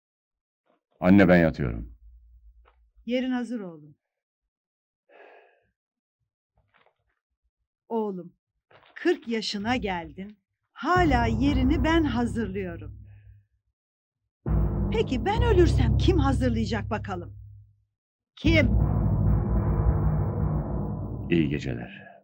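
A middle-aged man talks calmly and with animation nearby.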